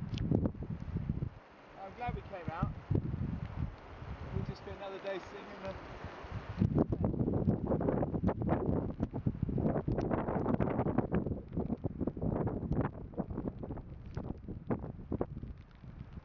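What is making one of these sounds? Wind blows hard and buffets outdoors.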